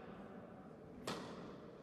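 A tennis racket strikes a ball with a sharp pop in an echoing indoor hall.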